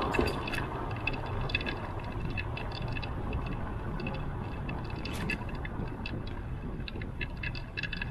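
A car drives slowly along a quiet street nearby.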